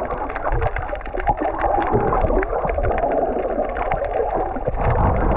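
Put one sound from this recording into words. Water rushes and crackles close by underwater.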